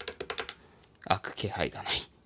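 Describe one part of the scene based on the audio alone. A knife blade scrapes across a tin can lid.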